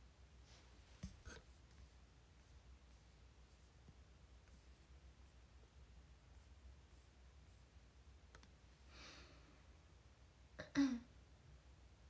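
A young woman speaks a few short words softly, close by.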